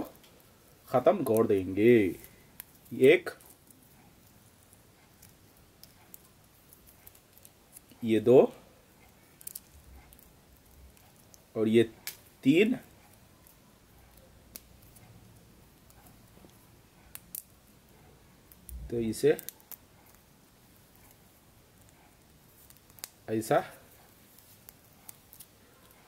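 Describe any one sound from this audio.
Small plastic pieces click and snap softly between fingers.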